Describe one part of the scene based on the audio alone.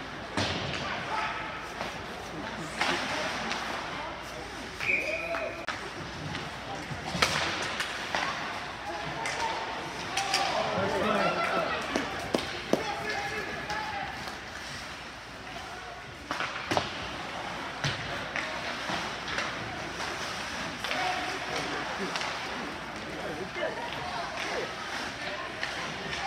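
A crowd of spectators talks and calls out in an echoing rink.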